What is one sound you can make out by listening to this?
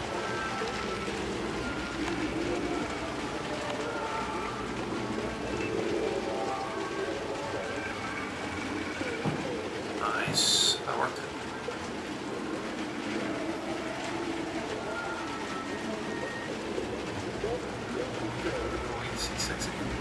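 A man talks calmly and steadily into a close microphone.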